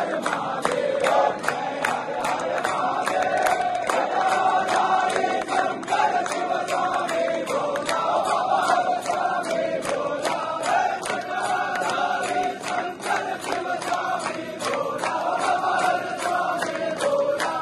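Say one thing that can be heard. A large crowd chants and sings together loudly.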